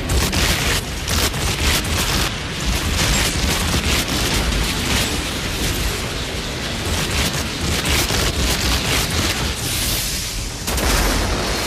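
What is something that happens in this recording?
Blades slash and thud against armour in a fight.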